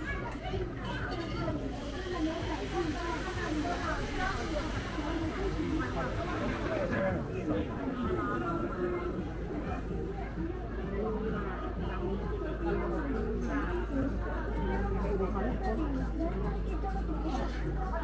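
A busy crowd of men and women chatters all around outdoors.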